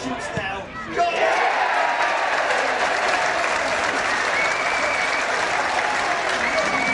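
A large crowd cheers loudly.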